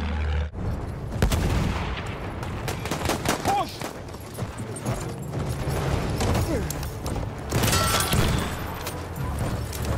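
Gunshots crack in bursts.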